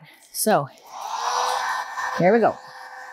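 A handheld gas torch hisses and roars.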